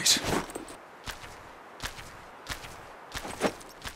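Heavy footsteps crunch slowly on dry ground.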